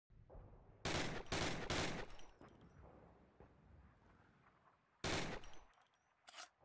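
A pistol fires several loud shots in quick succession.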